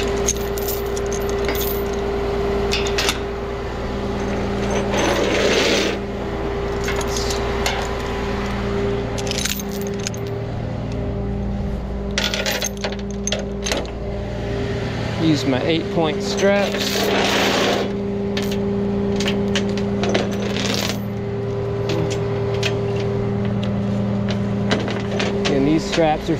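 Metal chains clink and rattle.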